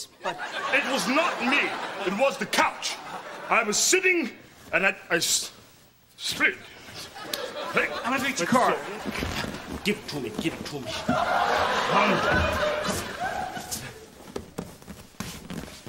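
An older man speaks loudly and excitedly.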